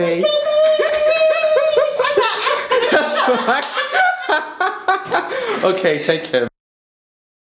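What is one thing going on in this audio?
A woman whoops and laughs with excitement close by.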